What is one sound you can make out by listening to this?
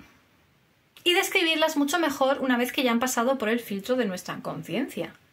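A woman speaks close to a microphone with animation.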